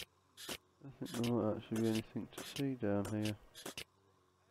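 A young man speaks briefly and with animation, close to a microphone.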